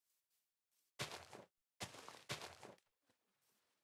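Plants rustle and snap as they are broken.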